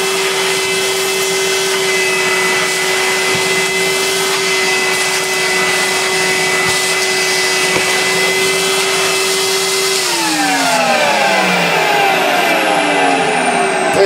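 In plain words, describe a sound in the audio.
A vacuum cleaner hums steadily as it sucks at a carpet, then its motor winds down.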